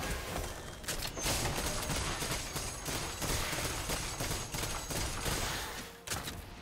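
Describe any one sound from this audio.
Spell effects and weapon blows crash and whoosh in a fast fight.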